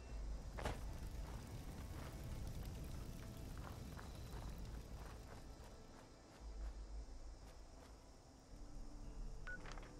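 Footsteps crunch over dry leaves and ground.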